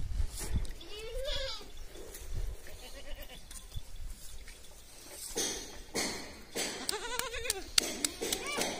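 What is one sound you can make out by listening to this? A goat bleats loudly nearby.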